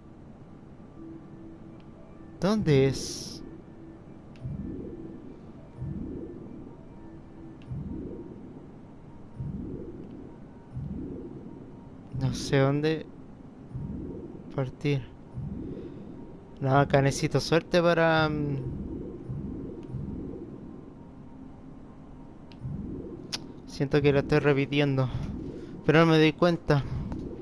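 Soft electronic whooshes pulse again and again.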